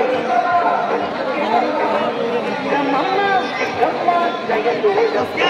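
A large crowd of men and women chatters loudly outdoors.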